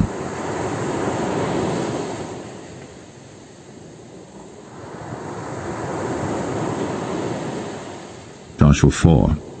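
Waves wash onto a pebble beach and draw back.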